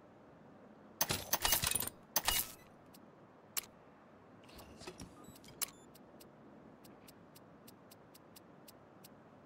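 Soft interface clicks tick as menu items are selected.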